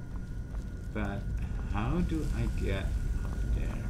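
A young man speaks casually into a microphone, close by.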